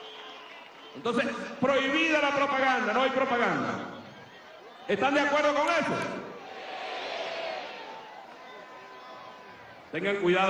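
A man speaks forcefully through a microphone and loudspeakers, heard outdoors.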